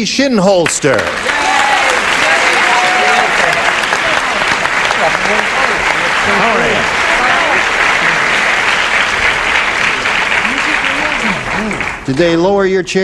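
A studio audience laughs and applauds loudly.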